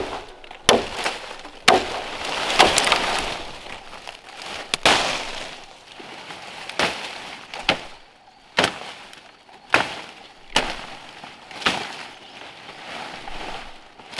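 Leaves and branches rustle and crackle as they are dragged.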